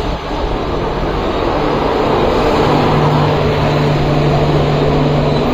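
Wheels of passenger coaches roll and clatter over the rails close by.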